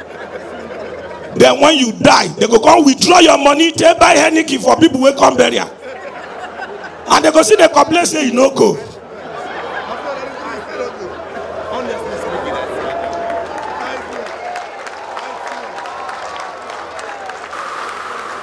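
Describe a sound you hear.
A crowd laughs and murmurs in a large room.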